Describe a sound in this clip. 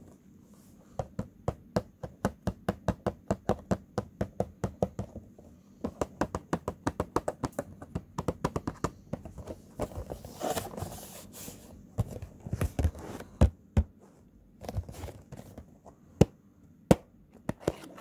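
Fingertips tap rapidly on the plastic window of a cardboard toy box.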